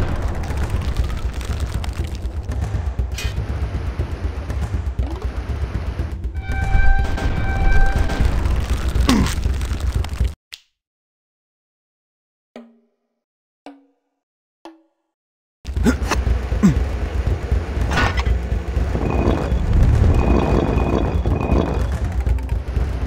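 Game music plays with a steady beat.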